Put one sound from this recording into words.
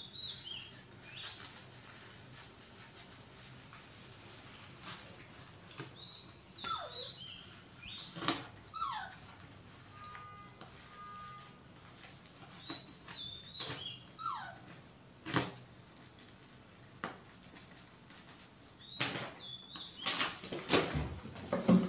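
A diaper crinkles as it is handled.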